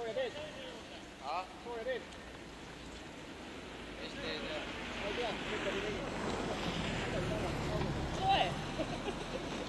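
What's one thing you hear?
Men and women call out and cheer nearby outdoors.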